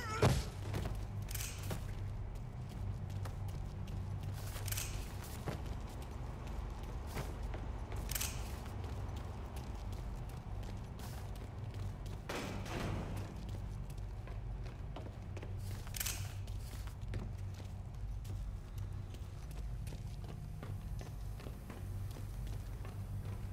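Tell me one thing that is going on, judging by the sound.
Footsteps tread on hard floors and stairs.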